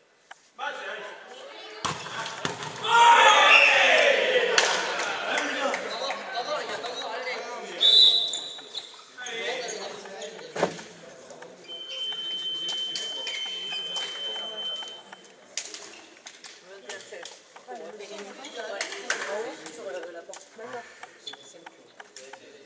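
Young men shout and call out to one another during play.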